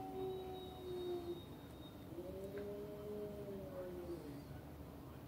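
A dog whines softly close by.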